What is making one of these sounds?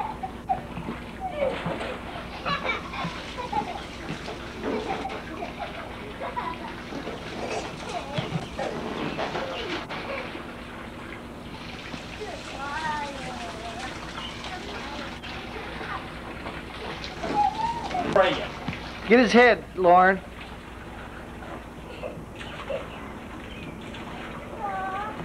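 Young children chatter and squeal outdoors.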